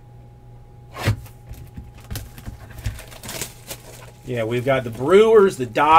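A cardboard box rustles and scrapes as hands handle it.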